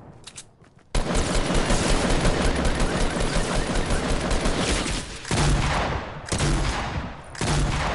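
A rifle fires rapid bursts of gunfire.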